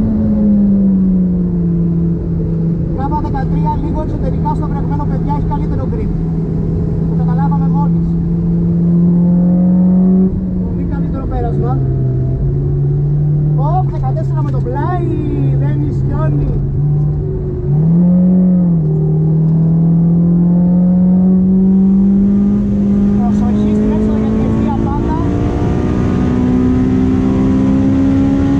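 A car engine drones loudly from inside the cabin, its pitch rising and dipping as the driver shifts and accelerates.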